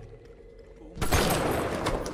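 An explosion bursts loudly nearby.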